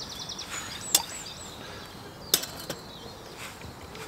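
A metal pot clinks down onto a small stove.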